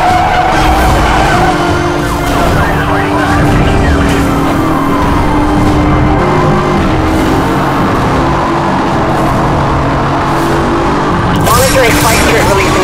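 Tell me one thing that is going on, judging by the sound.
A powerful car engine roars steadily at high speed.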